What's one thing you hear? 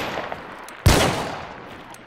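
A revolver fires a loud shot.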